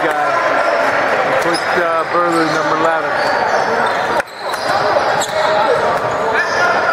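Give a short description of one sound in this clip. Young men call out to each other across the echoing gym.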